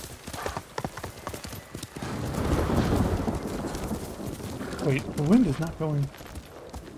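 A horse gallops, its hooves thudding on soft ground.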